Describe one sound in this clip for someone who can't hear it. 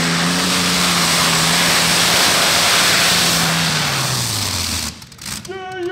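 A tractor engine roars loudly and then winds down.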